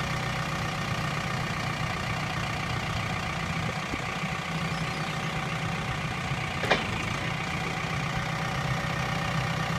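A forklift's hydraulic lift whines as the forks rise and lower.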